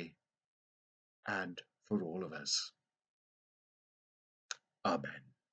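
A middle-aged man speaks with animation, close to a microphone, in short bursts with pauses.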